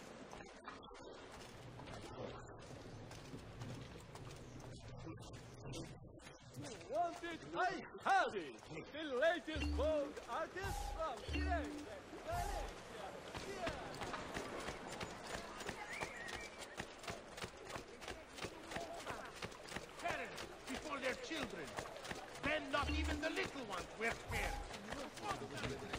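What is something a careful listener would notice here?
Footsteps hurry over stone paving.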